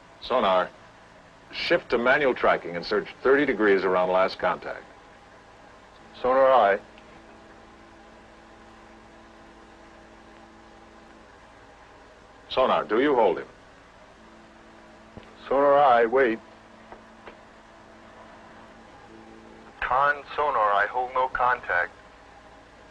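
A middle-aged man speaks crisply into a handheld radio microphone.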